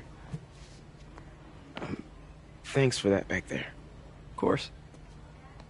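Another young man answers in a friendly voice.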